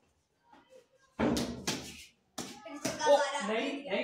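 A bat strikes a ball with a sharp knock.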